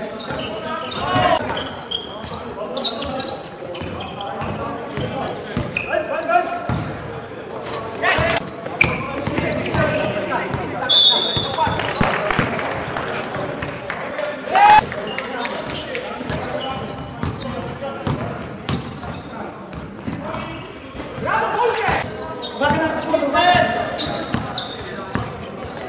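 Basketballs bounce on a wooden gym floor in a large echoing hall.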